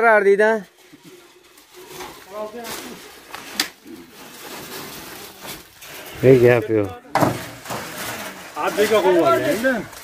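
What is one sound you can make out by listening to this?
Dry branches rustle and scrape along the ground.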